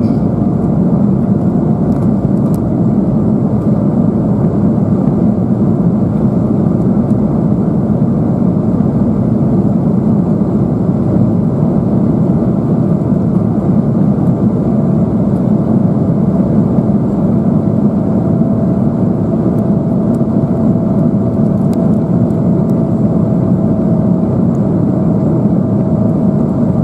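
Jet engines roar with a steady low rumble.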